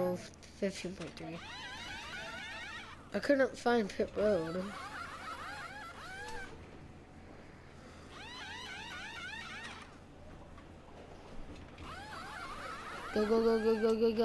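An air wrench whirs in quick bursts.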